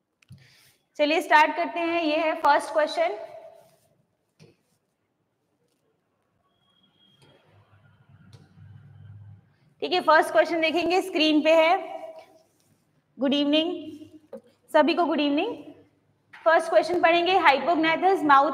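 A young woman speaks clearly into a nearby microphone, explaining in short bursts.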